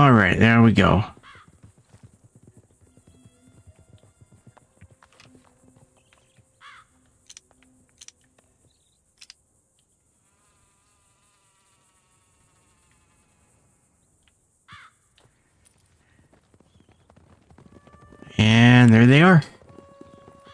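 A middle-aged man talks loudly and with animation close to a microphone.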